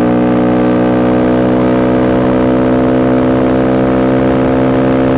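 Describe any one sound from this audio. A motorcycle engine drones steadily at cruising speed, slowly rising in pitch.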